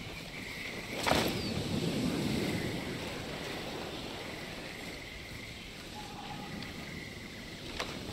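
Leaves and undergrowth rustle as a person crawls through them.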